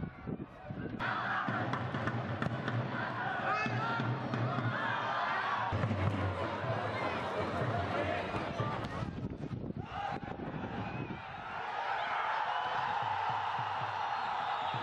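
A crowd cheers and chants in a stadium.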